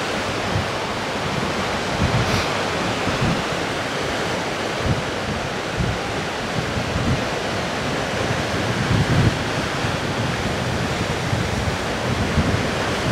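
Waves surge and crash against rocks.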